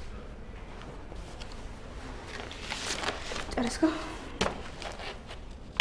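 A woman speaks quietly nearby.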